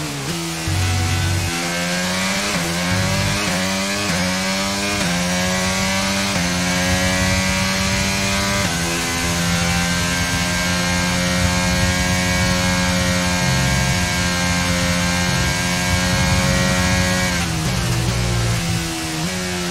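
A racing car engine screams loudly, rising in pitch through each gear and then dropping as it slows.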